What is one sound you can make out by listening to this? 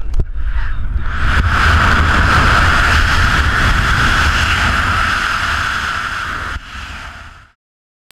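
Wind roars loudly and steadily during a free fall.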